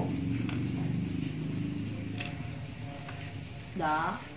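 Fingers crack and peel fruit shells with soft crackles.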